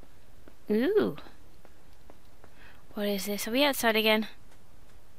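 A young woman speaks with animation into a headset microphone, close up.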